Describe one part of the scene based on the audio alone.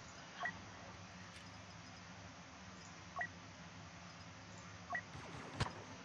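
Short electronic menu beeps sound one at a time.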